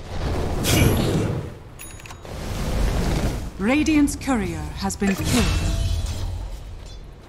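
Game spells blast and whoosh during a fight.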